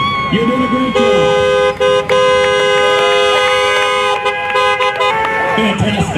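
Car horns honk in long, steady blasts.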